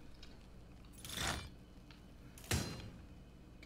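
A crossbow bolt whooshes through the air and thuds into its target.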